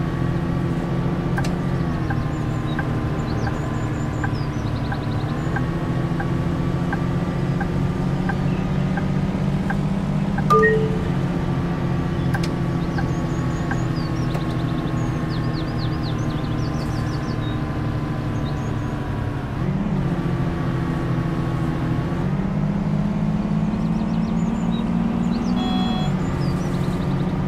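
A bus engine hums steadily, its pitch rising and falling as the bus speeds up and slows down.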